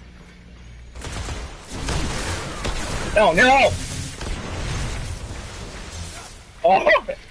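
Energy weapons crackle and hiss in a burst of fighting.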